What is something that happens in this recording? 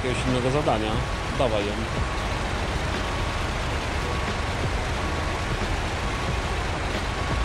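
A heavy truck engine rumbles steadily.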